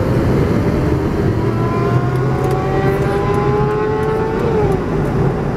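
A motorcycle engine revs up ahead, rising in pitch.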